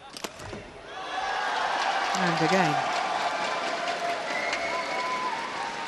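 A crowd in a large hall cheers and shouts loudly.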